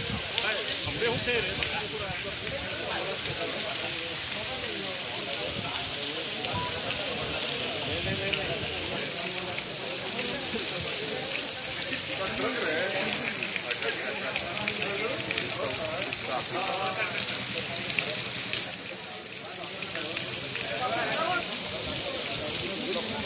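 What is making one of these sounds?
Fast floodwater rushes and churns outdoors.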